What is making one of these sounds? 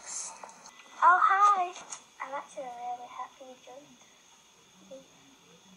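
A second young girl talks through a phone's speaker.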